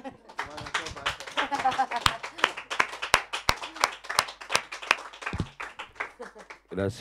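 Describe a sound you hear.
A man laughs and talks with animation close by.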